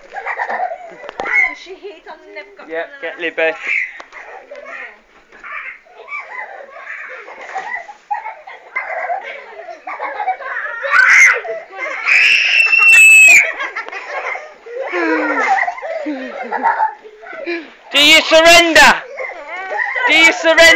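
Young children talk and shout excitedly close by.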